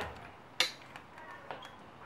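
A hand tightens a clamp with clicks and knocks.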